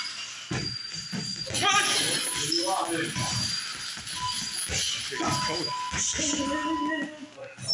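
A punching bag's chain rattles and creaks as the bag swings.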